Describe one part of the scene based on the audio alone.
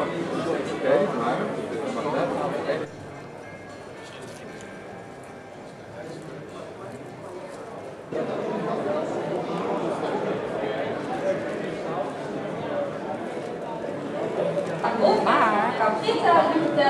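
A crowd of people chatters in a busy indoor hall.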